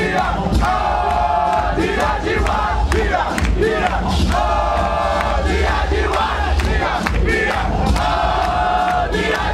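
A crowd cheers and whoops loudly in a large echoing hall.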